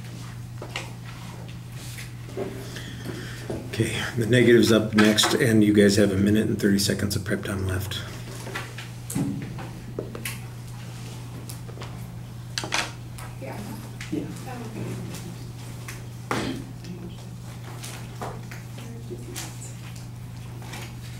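Paper rustles and crinkles close by.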